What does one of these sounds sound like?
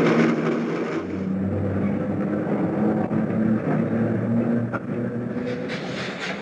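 An electric train rolls along tracks.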